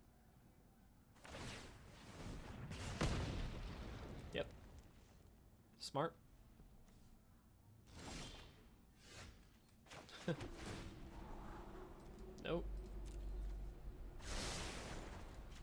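Game sound effects chime and whoosh.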